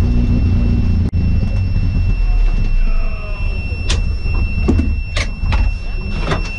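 A rally car engine roars loudly from inside the cabin.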